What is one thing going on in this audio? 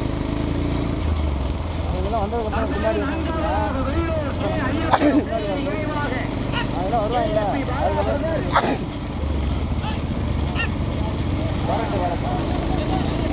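Cart wheels rumble on a paved road.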